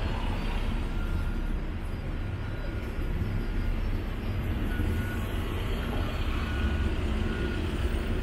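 A low wind rumbles steadily outdoors.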